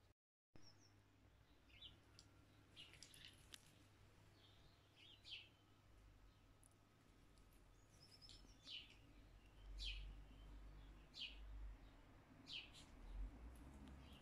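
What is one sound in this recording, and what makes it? A small dog trots and rustles through grass.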